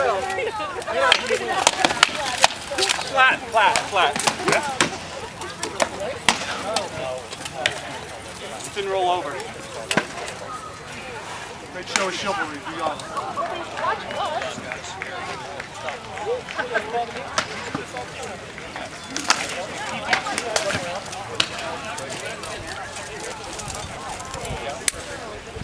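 Swords clash and bang against wooden shields.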